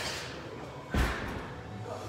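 Feet thump against a wall as a man kicks up into a handstand.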